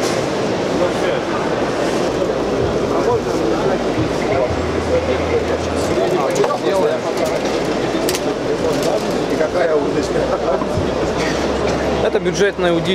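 A crowd murmurs and chatters in a busy, echoing hall.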